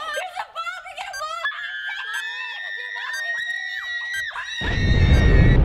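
Young women scream and shout with excitement close by.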